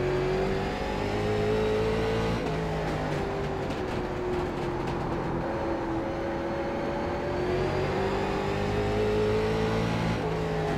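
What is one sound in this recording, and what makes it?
A race car engine roars steadily, its pitch rising and falling as the car shifts and slows through corners.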